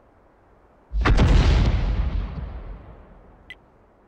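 A tank cannon fires with a loud boom that slowly rumbles away.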